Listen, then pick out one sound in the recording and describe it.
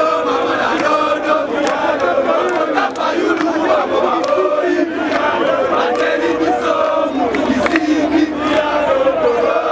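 A large crowd of young men chants and shouts loudly outdoors.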